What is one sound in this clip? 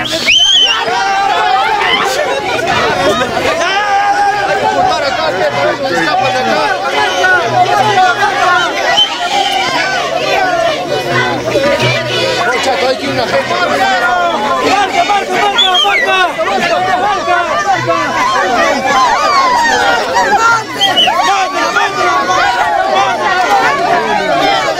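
A crowd of young men and women shouts and cheers loudly outdoors.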